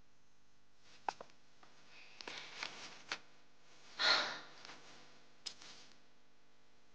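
Photographs rustle in hands.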